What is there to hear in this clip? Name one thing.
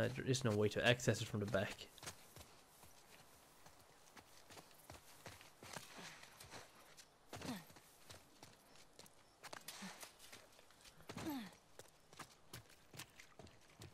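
Footsteps run quickly over grass and hard ground.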